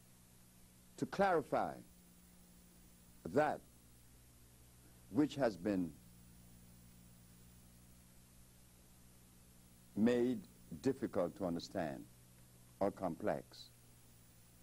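An elderly man speaks calmly in short bursts into a microphone, with pauses between them.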